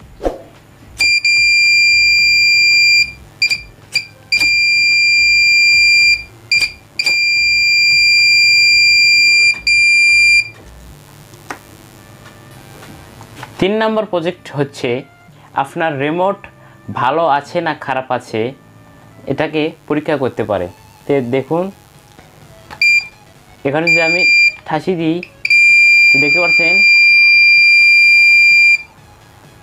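An electronic buzzer beeps with a shrill, steady tone in bursts.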